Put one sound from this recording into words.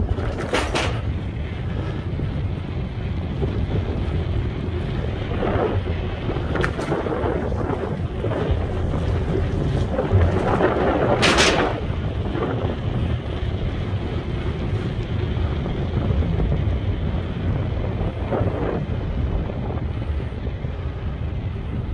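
Wind blows steadily outdoors, rumbling low.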